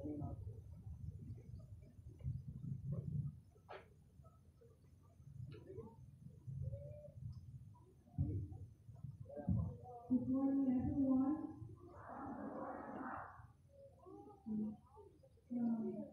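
A crowd of young students chatters outdoors.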